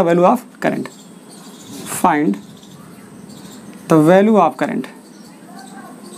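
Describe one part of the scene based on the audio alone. A marker squeaks softly on a whiteboard.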